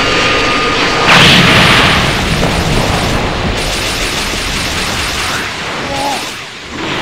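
Energy blasts whoosh and explode in a game battle.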